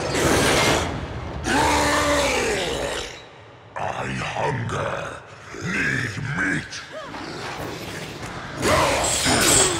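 Weapons clash and strike.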